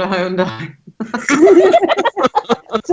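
Several men and women laugh over an online call.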